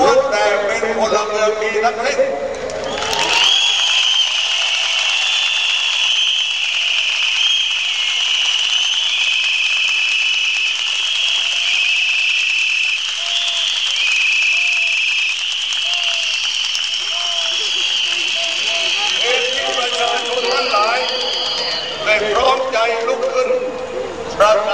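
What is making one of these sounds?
A man speaks loudly into a microphone over a loudspeaker.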